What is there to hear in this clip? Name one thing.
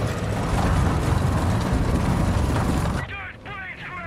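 Wind rushes loudly past a plane.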